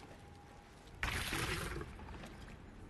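A loud whooshing burst sounds briefly.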